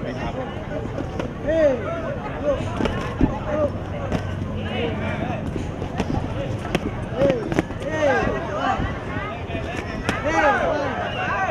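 Boxing gloves thud against each other in quick blows.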